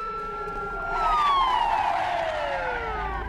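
A dust storm roars in on a strong wind.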